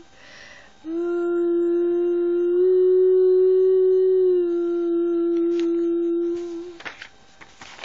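A young girl sings long, steady notes close to the microphone.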